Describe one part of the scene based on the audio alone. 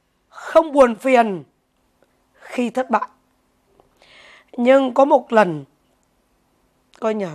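A middle-aged woman speaks calmly into a nearby microphone, in short phrases with pauses.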